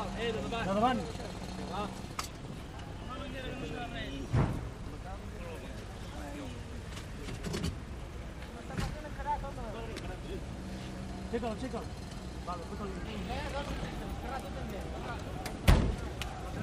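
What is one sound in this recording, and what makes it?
Men talk in low voices close by.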